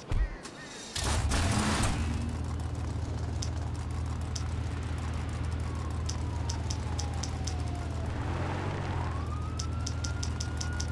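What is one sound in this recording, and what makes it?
A car engine starts with a roar and then idles with a steady low rumble.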